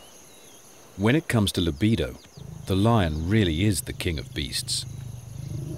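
A lion growls and snarls loudly close by.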